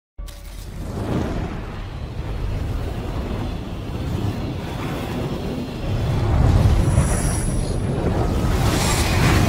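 Flames roar and whoosh.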